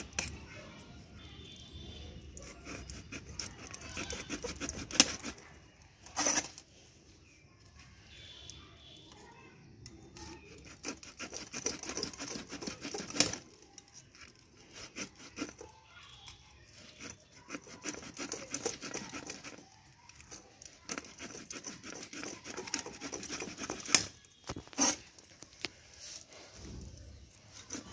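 A knife scrapes scales off a fish with quick rasping strokes.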